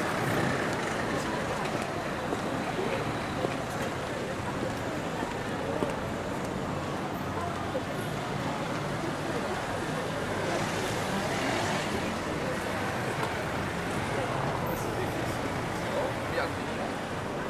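Car engines idle and hum in slow traffic.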